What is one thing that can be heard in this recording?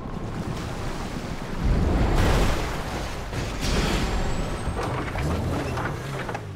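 An engine roars loudly.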